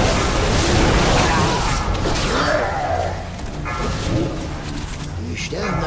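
Magic spells crackle and whoosh in a noisy battle.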